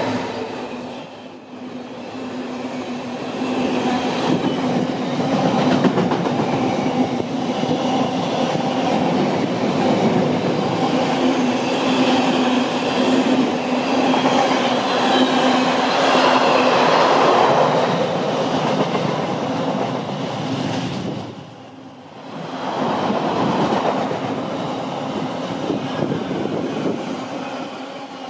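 A long freight train rumbles and clatters past close by.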